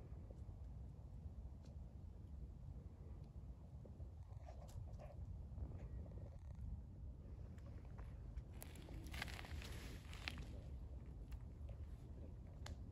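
An animal's paws rustle softly on dry leaves nearby.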